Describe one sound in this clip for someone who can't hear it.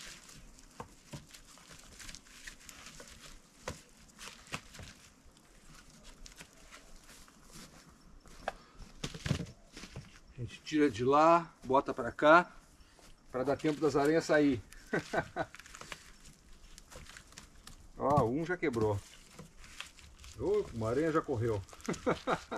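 Sticks and branches knock and clatter as they are stacked.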